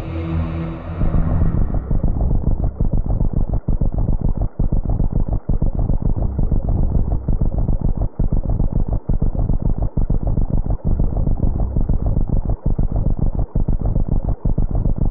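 A deep, pulsing rumble drones steadily.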